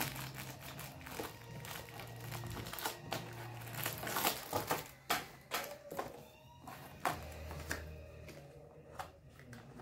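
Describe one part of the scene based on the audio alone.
Cardboard rustles and taps as fingers press open a small paper door.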